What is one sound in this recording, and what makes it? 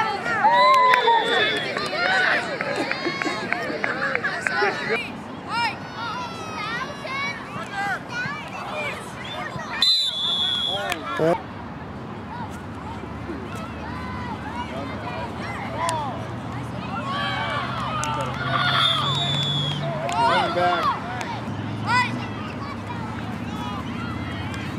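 Children shout and call out outdoors across an open field.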